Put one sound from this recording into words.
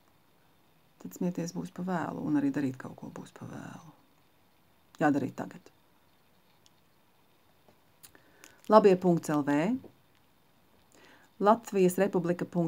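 A middle-aged woman speaks calmly and close by, in short phrases with pauses.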